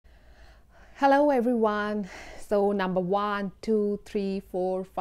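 A young woman speaks cheerfully and with animation, close to a microphone.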